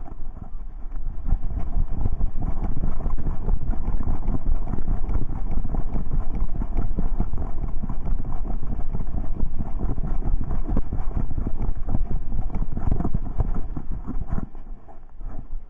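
Tyres rattle and crunch over a bumpy dirt trail.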